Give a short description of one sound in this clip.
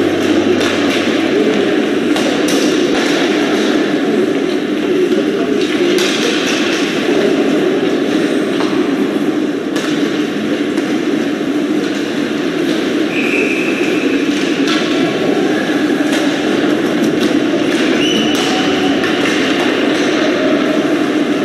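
Spectators chatter nearby in a large echoing arena.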